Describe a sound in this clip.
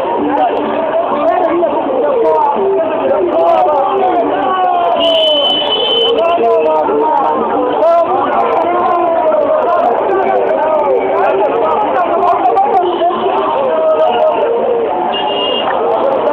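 A crowd of men chants and shouts loudly.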